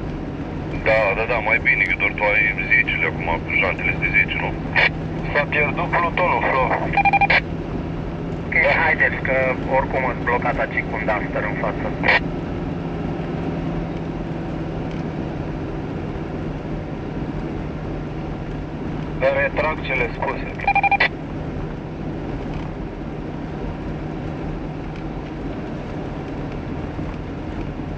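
Tyres crunch and hiss over packed snow.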